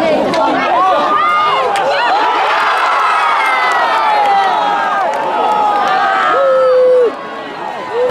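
A crowd cheers loudly and whistles.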